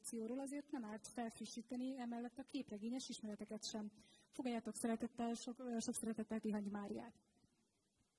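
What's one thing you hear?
A young woman reads out over a loudspeaker in a large hall.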